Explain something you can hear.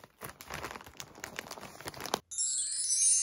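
Plastic wrapping rustles and crinkles.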